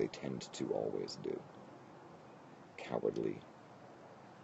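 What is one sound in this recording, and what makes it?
A man speaks casually, close to a webcam microphone.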